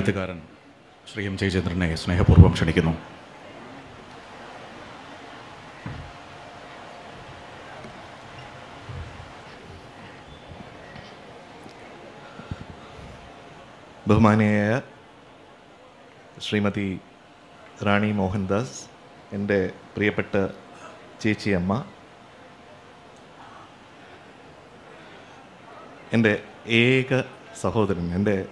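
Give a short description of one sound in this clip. A man speaks into a microphone over loudspeakers in a large hall, with pauses between phrases.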